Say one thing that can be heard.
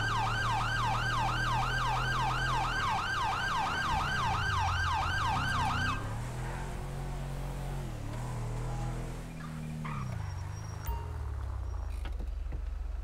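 A car engine revs and slows down.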